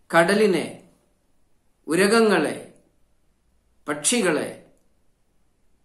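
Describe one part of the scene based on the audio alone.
A middle-aged man speaks calmly and slowly into a close microphone, in short phrases with pauses.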